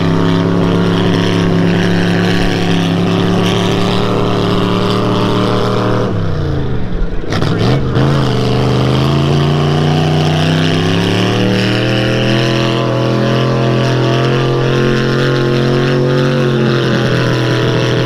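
A truck engine roars loudly as it churns through mud, dropping and then revving back up.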